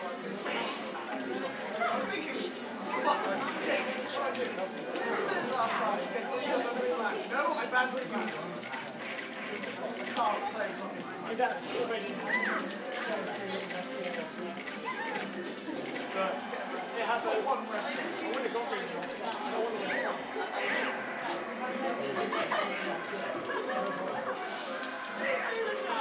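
Video game fight sounds and effects play from a television loudspeaker.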